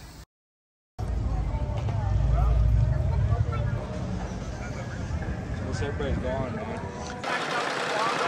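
Men and women chat in a crowd outdoors.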